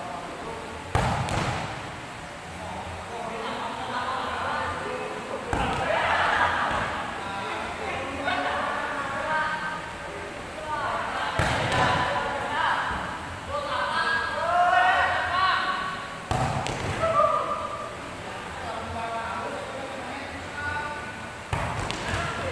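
A ball is spiked hard with a loud smack in an echoing hall.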